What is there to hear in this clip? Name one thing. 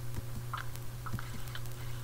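A spider hisses.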